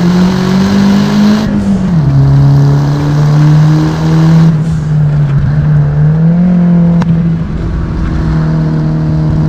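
A car engine hums steadily and shifts pitch as it changes gear.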